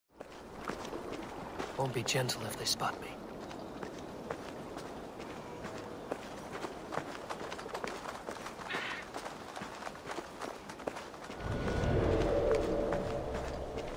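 Footsteps crunch steadily on a stone path.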